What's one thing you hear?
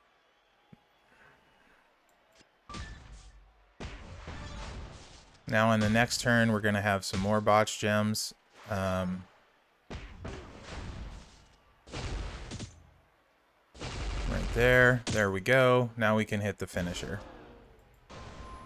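Video game punches and thuds sound.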